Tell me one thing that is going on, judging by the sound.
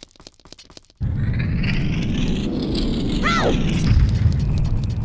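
A heavy stone door rumbles loudly as it rolls open.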